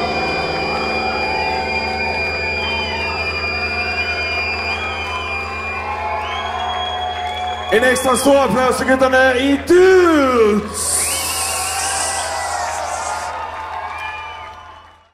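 A concert crowd cheers and whistles in a large hall.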